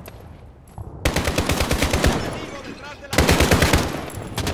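An assault rifle fires rapid bursts close by.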